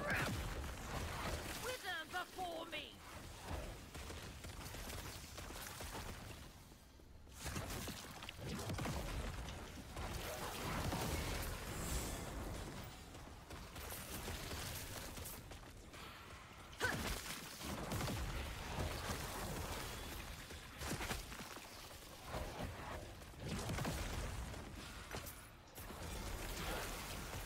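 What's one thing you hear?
Game spells crackle and burst in rapid combat.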